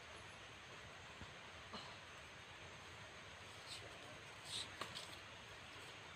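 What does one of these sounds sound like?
A man's footsteps rustle through leafy undergrowth.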